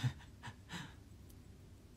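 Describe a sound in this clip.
A young man laughs softly close to a microphone.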